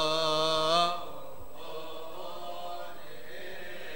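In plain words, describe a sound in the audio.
Men's voices murmur softly in the background.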